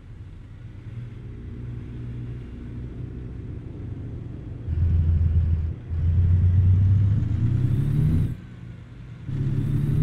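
A truck engine revs up loudly as the truck pulls away.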